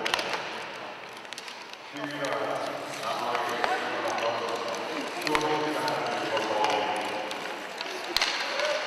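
Hockey sticks clack against a puck on the ice.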